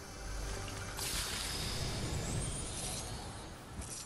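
A treasure chest opens with a shimmering chime.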